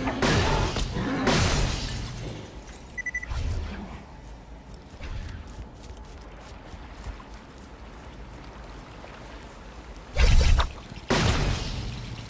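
An energy gun fires with loud bursting blasts.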